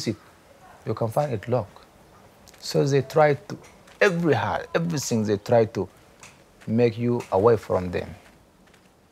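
A man speaks calmly in short phrases, close to the microphone.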